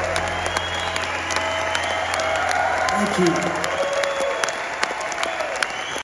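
A live band plays on stage in a large hall.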